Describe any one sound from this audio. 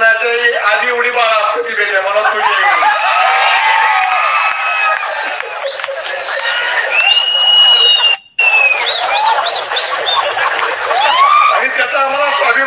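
A middle-aged man speaks forcefully into a microphone through loudspeakers outdoors.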